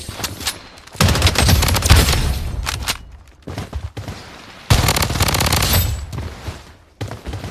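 Rapid gunfire rattles in sharp bursts.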